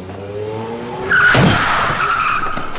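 A car whooshes past close by.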